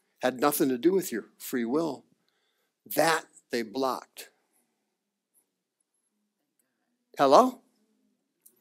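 A man speaks with animation through a microphone, in short bursts with pauses.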